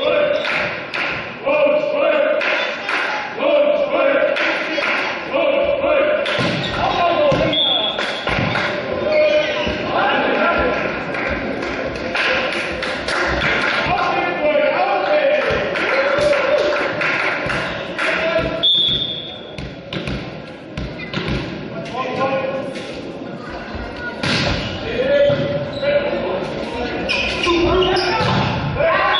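A crowd of spectators cheers and chants loudly in an echoing hall.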